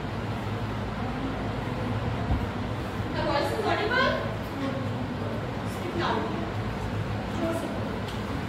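A young woman speaks to a class, her voice a little distant in an echoing room.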